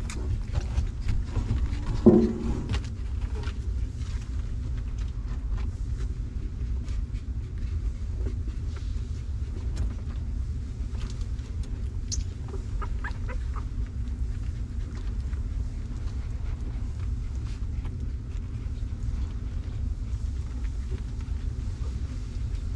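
Newborn puppies squeak and whimper softly.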